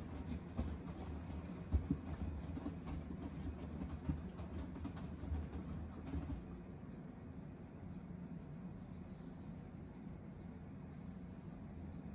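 A washing machine drum turns with a low rumble.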